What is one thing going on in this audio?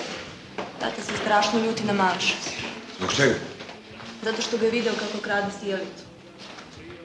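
A young woman speaks quietly and tensely nearby.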